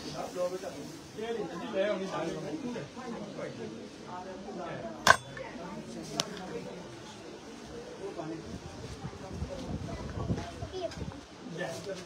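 A crowd of men and women talk nearby in an echoing room.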